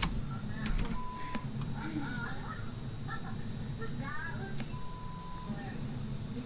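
A short electronic beep sounds as a countdown ticks down.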